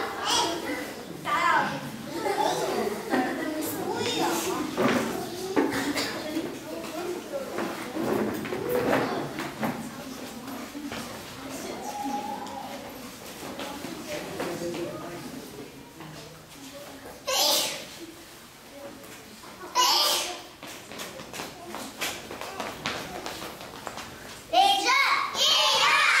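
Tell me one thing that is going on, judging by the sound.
Young children chatter and call out nearby, in a room with a slight echo.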